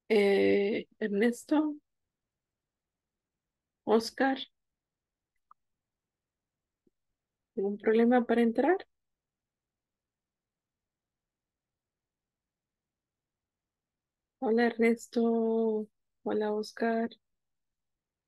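A young woman speaks calmly through an online call, in short phrases with pauses.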